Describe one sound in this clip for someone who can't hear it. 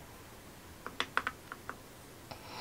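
A brush taps and clicks against small paint pots.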